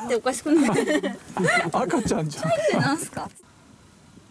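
A young woman talks and laughs with animation close by.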